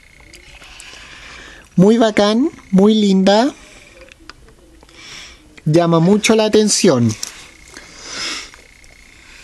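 Small plastic wheels roll softly across a wooden tabletop.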